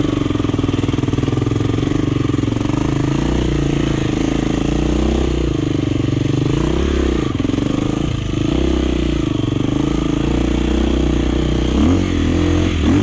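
A dirt bike engine revs up and down loudly up close.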